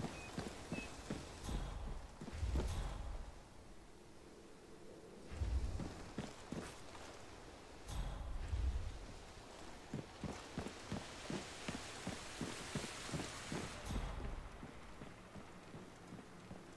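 Footsteps thud quickly on a wooden boardwalk.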